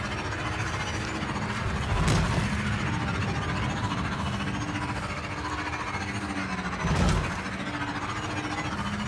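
A motorbike engine hums steadily as it rides along a dirt track.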